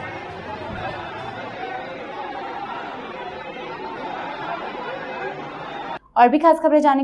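A crowd of men shouts and clamours in a large hall.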